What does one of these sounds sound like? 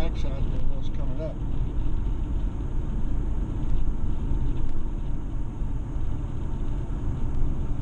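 A car's engine hums steadily as it drives along a road.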